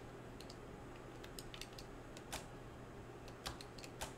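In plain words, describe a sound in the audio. A switch clicks.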